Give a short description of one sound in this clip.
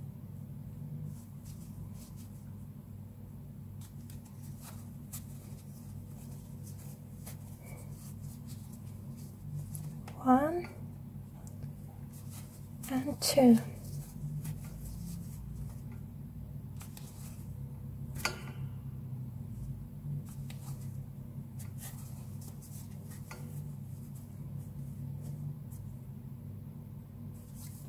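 Thick yarn rustles softly as a crochet hook pulls loops through it.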